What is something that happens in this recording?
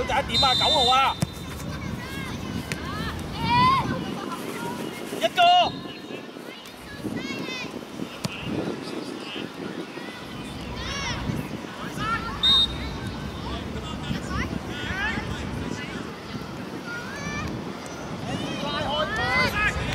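Children shout and call out across an outdoor playing field.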